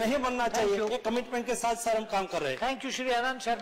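A man speaks emphatically into a microphone.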